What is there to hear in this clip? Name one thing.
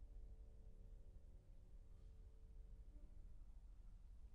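A piano plays soft, lingering notes in a large hall.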